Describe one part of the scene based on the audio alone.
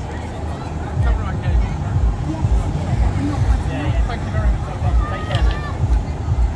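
A tram rumbles and clatters slowly along rails close by.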